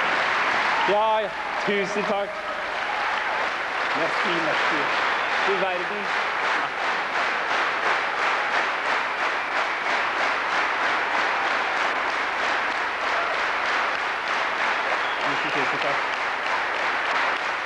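A large audience applauds in a large hall.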